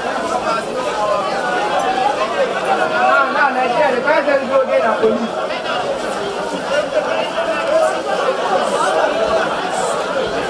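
Plastic bags and cardboard boxes rustle and thump as they are rummaged through.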